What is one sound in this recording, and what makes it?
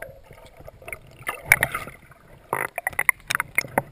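Water splashes as the surface is broken.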